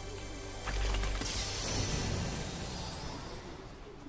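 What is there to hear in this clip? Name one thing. A treasure chest creaks open with a sparkling chime.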